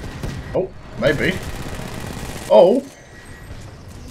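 A rifle fires rapid shots.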